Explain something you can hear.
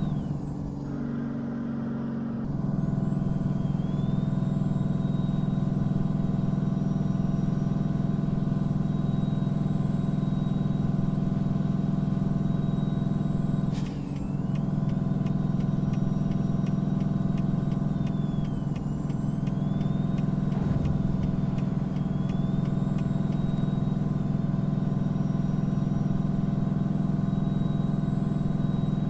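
A truck's tyres hum on the road.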